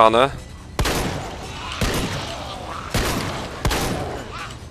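A shotgun fires loud, booming blasts with a short echo.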